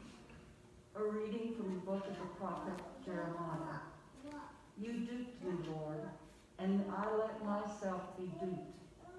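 A woman reads aloud into a microphone in an echoing hall.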